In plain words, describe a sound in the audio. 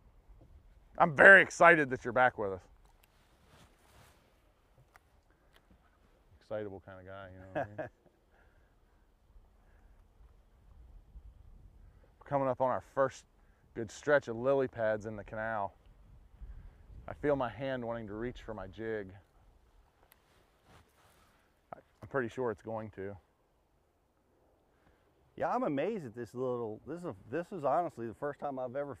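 A man talks calmly in short bursts, close by.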